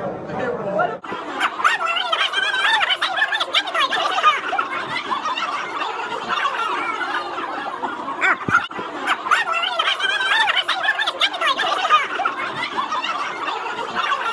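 A crowd of adult men and women chatter and laugh loudly around the listener.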